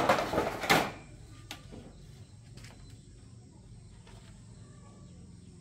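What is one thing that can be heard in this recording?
Metal parts clink and tap against each other.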